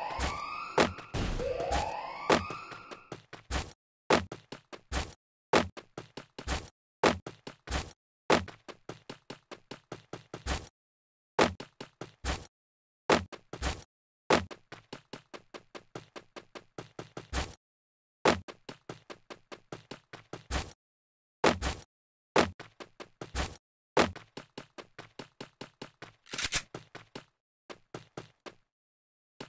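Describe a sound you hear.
Footsteps thud quickly and steadily as a figure runs.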